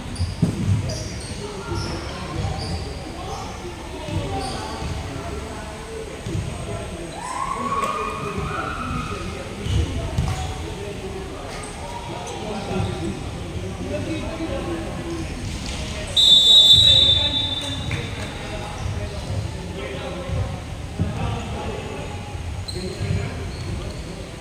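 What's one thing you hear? Many young people chatter and call out in a large echoing hall.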